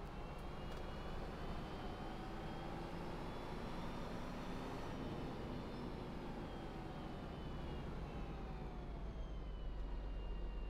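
A bus engine hums steadily, its whine rising and falling as the bus drives and turns.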